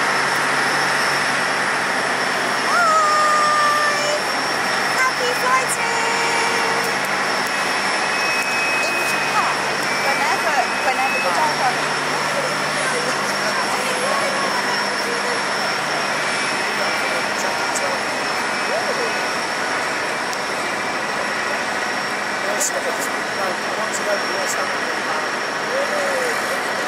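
A tug's engine rumbles as it pushes an aircraft.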